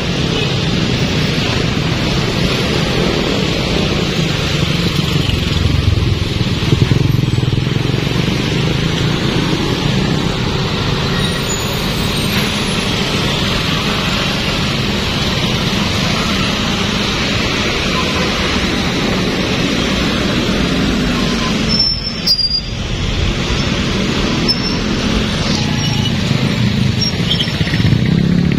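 Motorcycle engines rumble steadily close by.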